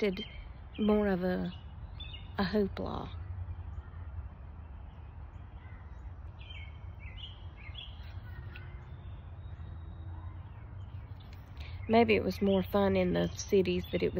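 A middle-aged woman speaks up close with animation.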